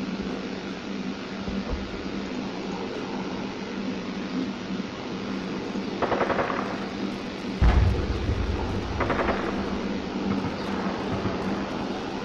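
Footsteps crunch over gritty rubble at a steady walking pace.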